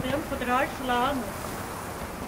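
An elderly woman speaks warmly, close by.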